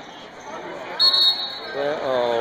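A whistle blows shrilly.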